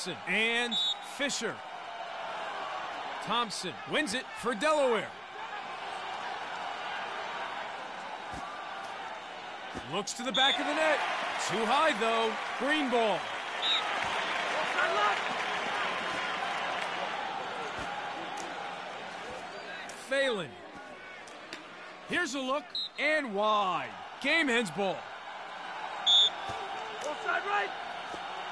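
A large stadium crowd murmurs and cheers steadily, swelling louder for a while.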